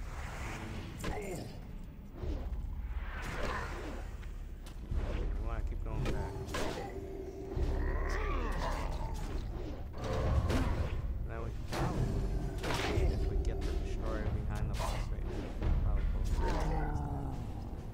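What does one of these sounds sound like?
Weapons clash and strike in a fight.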